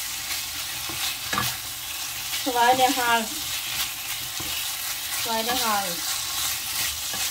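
Meat sizzles in a hot frying pan.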